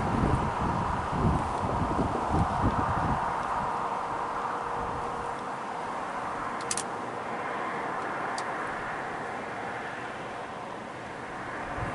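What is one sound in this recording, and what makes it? A bear tears and chews grass close by.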